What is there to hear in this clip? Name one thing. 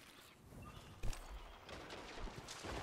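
A gun fires loud, sharp shots.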